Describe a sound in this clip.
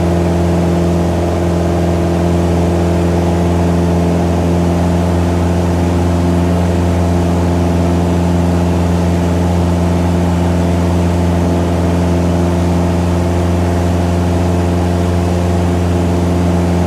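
A small plane's propeller engine drones loudly and steadily, heard from inside the cockpit.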